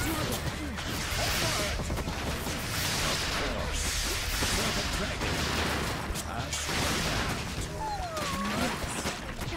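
Soldiers shout in battle.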